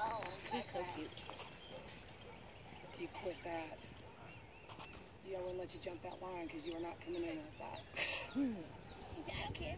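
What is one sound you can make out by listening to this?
A woman talks outdoors.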